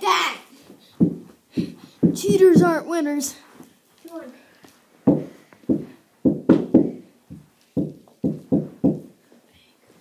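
Hockey sticks tap and knock on the floor.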